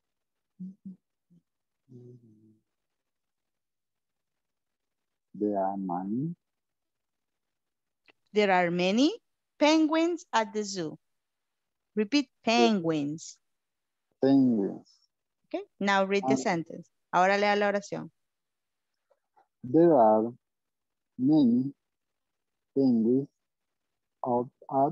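A woman speaks clearly through an online call, reading out sentences.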